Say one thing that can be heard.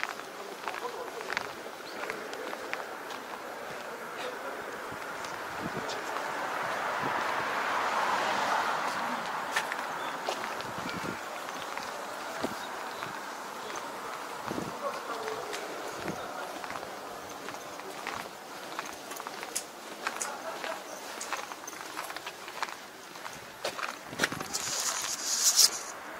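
Footsteps walk slowly on pavement outdoors.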